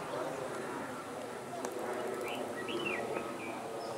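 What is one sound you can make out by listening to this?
A cricket bat strikes a ball with a sharp knock.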